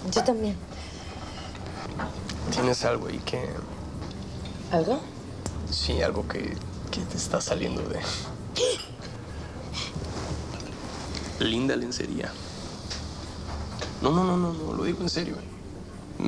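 A woman speaks softly and calmly.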